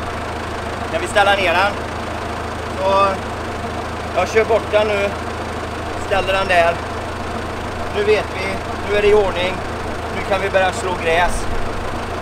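A man talks calmly and explains, close by outdoors.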